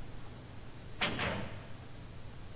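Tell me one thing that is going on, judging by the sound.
A heavy metal door swings open with a scrape.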